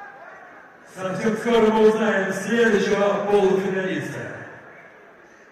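A man shouts loudly in an echoing hall.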